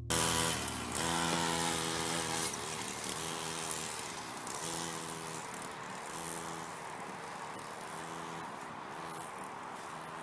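A small motorbike engine buzzes, revving up and down as it moves away.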